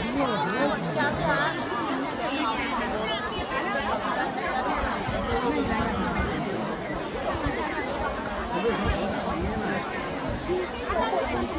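A large crowd of men and women chatter all around, close by, outdoors.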